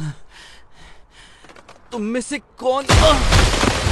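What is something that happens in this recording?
A man groans and cries out in pain.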